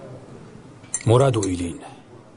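A younger man answers briefly nearby.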